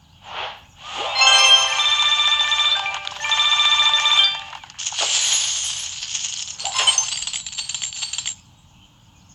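Bright game chimes and jingles play as coins pour out.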